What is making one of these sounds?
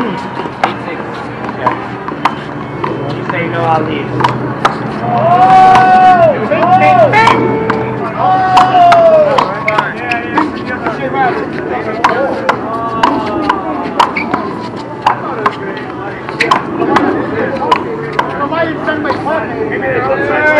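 A rubber ball smacks sharply against a wall and hands, again and again.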